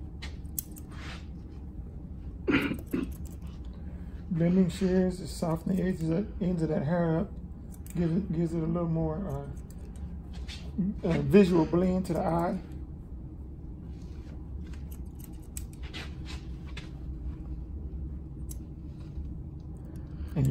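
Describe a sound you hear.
Scissors snip through hair in light clicks.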